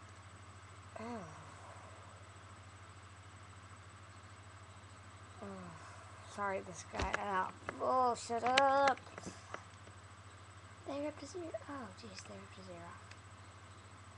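A boy talks close to a microphone, in short bursts with pauses.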